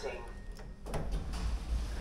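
A finger presses a lift button with a soft click.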